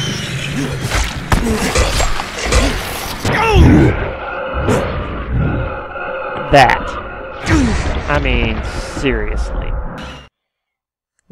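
A monster snarls and screeches up close.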